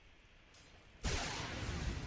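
A magic spell bursts with a loud rushing roar.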